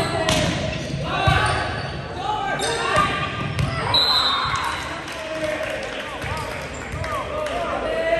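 Sneakers squeak sharply on the wooden gym floor.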